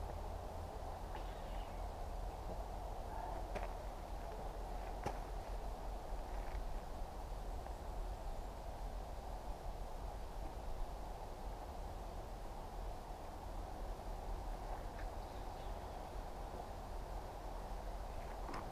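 Wind blows through trees outdoors.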